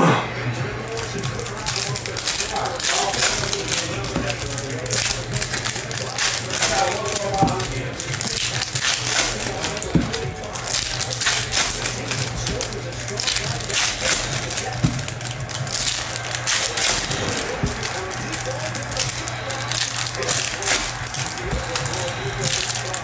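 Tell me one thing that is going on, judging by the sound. Foil wrappers crinkle and tear as card packs are opened.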